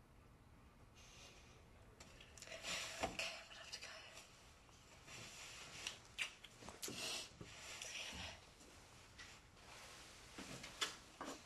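A young woman speaks tearfully and haltingly nearby.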